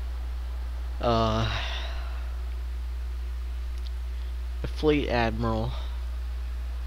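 A young man speaks in short bursts into a headset microphone, close by.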